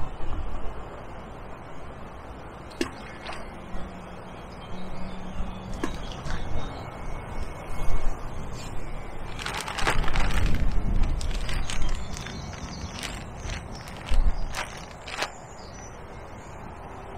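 Wind rumbles softly outdoors.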